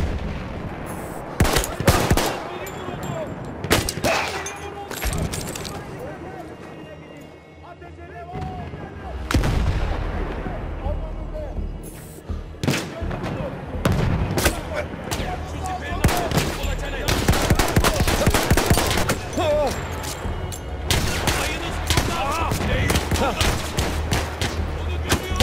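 Battle noise rumbles steadily with distant explosions.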